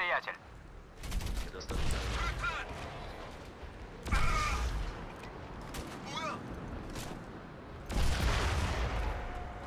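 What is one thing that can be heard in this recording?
A rifle fires in bursts.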